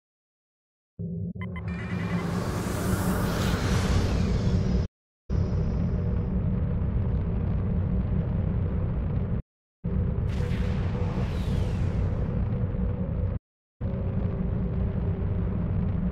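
A spaceship engine hums low and steady, cutting out briefly now and then.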